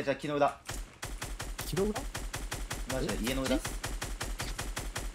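A game rifle fires in a rapid steady burst.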